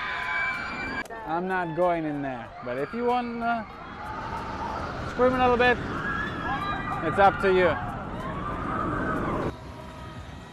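Riders on a roller coaster scream loudly.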